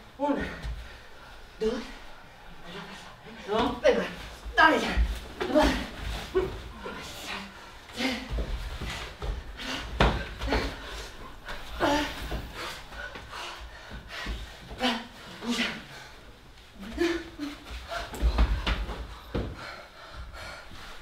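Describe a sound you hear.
A young woman shouts and cries out with strong emotion in a hall.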